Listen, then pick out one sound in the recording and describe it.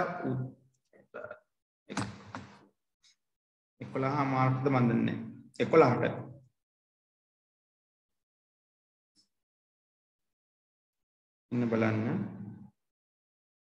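A man speaks calmly in short phrases through an online call, with pauses.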